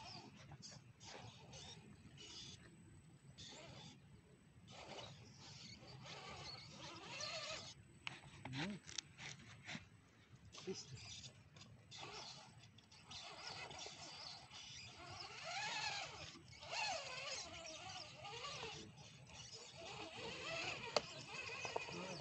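Plastic tyres scrape and grind on rock.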